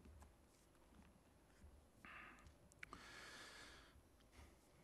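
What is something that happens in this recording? Pages of a book rustle.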